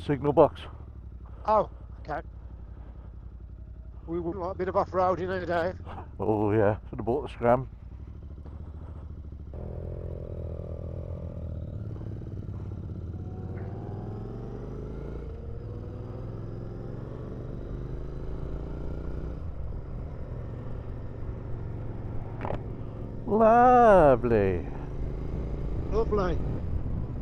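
A motorcycle engine hums and rises in pitch as it speeds up through the gears.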